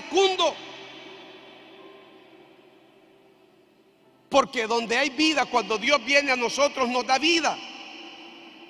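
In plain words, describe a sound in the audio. A man preaches loudly and passionately through a microphone in a large echoing hall.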